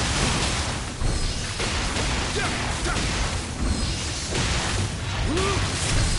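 Fiery blasts burst with loud whooshes.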